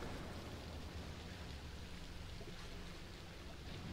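A man wades slowly through deep water.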